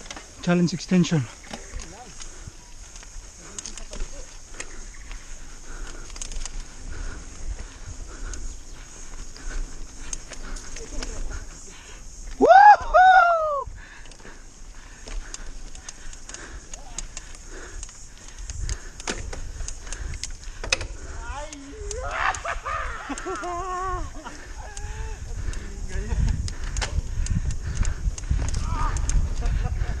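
Bicycle tyres crunch and roll over a rough dirt trail.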